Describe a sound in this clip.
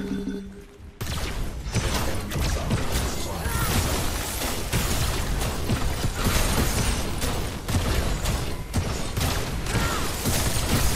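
Gunfire and energy blasts crackle and boom rapidly.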